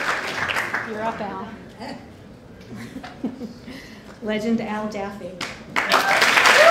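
A woman speaks through a microphone, cheerfully.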